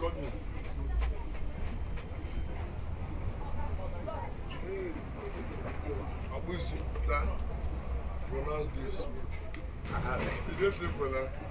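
A young man talks cheerfully nearby.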